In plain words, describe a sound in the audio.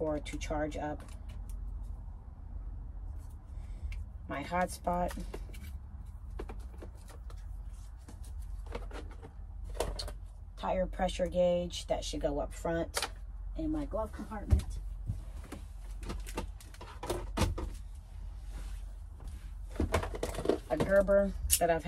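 Small objects click and rattle as they are handled.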